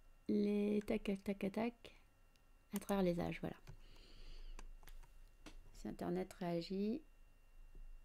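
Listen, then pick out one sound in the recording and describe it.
A woman speaks with animation through a microphone.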